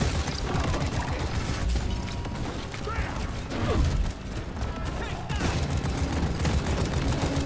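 Rapid gunfire rattles and booms.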